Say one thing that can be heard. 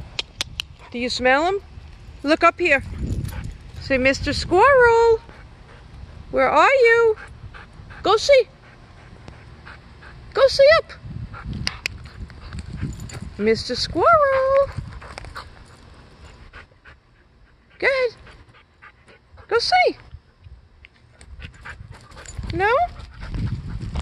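A dog whines and yelps in high, wavering cries close by.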